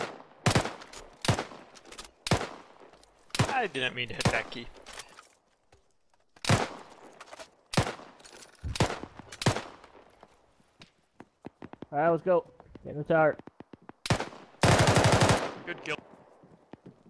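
Rifle shots crack out in sharp bursts.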